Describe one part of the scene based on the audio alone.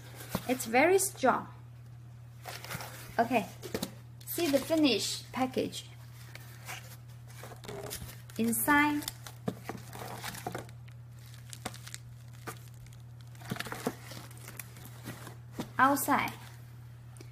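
A cardboard box is handled and slid about.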